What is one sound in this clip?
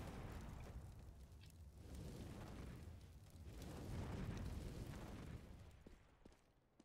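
Flames roar and crackle steadily close by.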